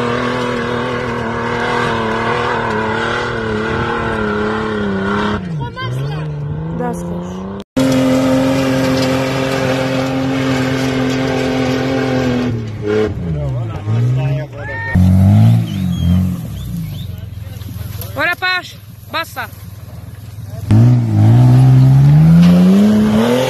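An engine roars and revs hard, its pitch rising and falling.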